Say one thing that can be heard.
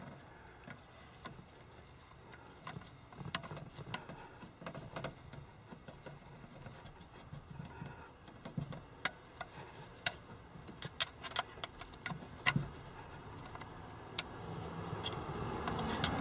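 A metal tool clicks and scrapes against a metal ring.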